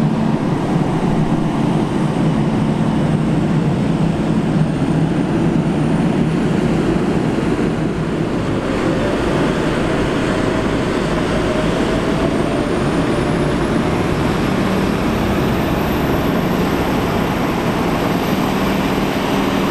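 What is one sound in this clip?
Large tractor engines rumble and roar steadily close by.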